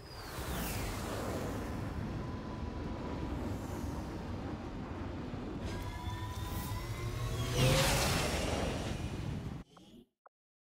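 An aircraft's jet engines roar steadily as it hovers.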